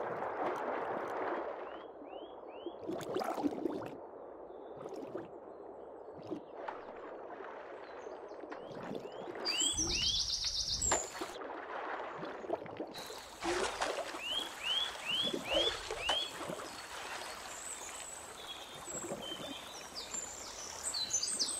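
Water gurgles and bubbles softly underwater.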